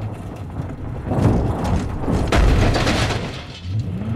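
A car crashes and bumps hard over rocks.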